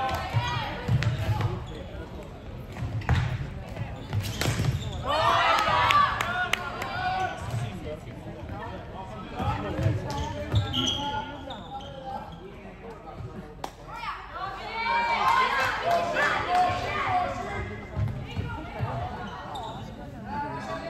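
Plastic sticks clack against a ball and the floor.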